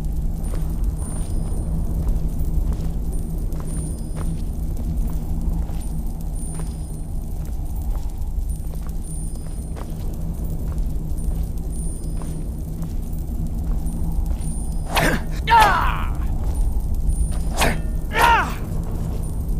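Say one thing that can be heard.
Footsteps fall on a stone floor.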